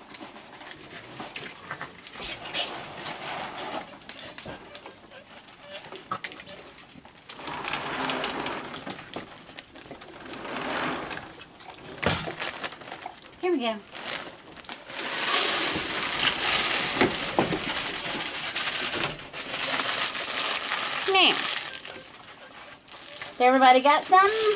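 Raccoons crunch and chew food close by.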